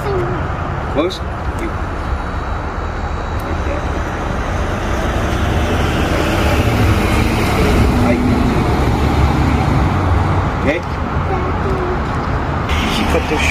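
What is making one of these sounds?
Several people talk quietly nearby outdoors.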